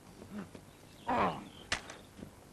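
A man calls out briefly.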